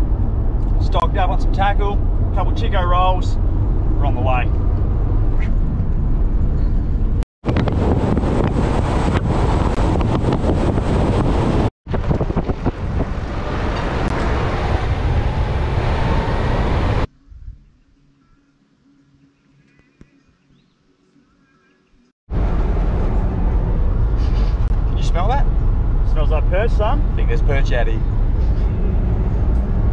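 A car engine and tyres rumble steadily on a road.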